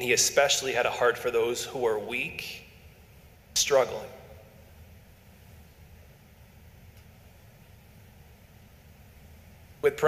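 A young man speaks calmly into a microphone, heard over a loudspeaker in an echoing hall.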